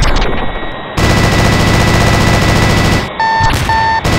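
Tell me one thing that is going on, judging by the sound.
A cannon fires in a rapid burst.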